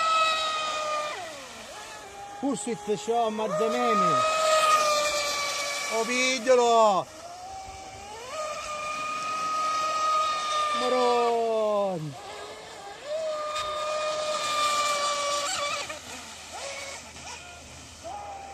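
A small model boat's motor whines loudly, rising and falling in pitch as the boat speeds back and forth across the water.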